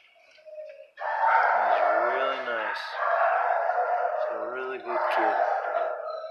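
A plastic cone rustles and scrapes against a dog's collar.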